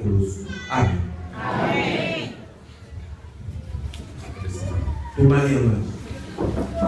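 A man speaks loudly into a microphone over a loudspeaker, in an echoing hall.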